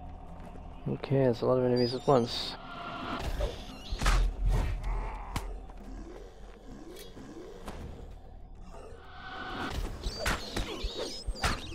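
Weapon blows land with heavy thuds.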